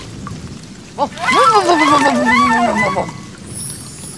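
A small cartoon creature shakes water from its fur.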